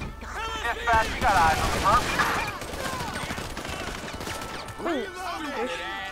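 A rifle fires a quick burst of loud shots.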